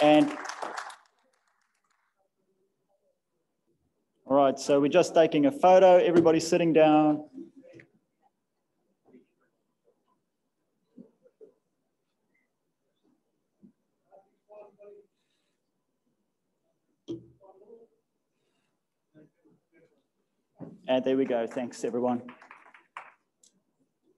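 A man speaks calmly through a microphone in a large echoing hall, with long pauses.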